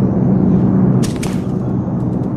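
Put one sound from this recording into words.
A rifle shot cracks once.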